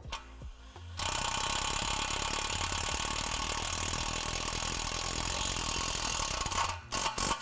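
A cordless drill whirs steadily, driving a screw.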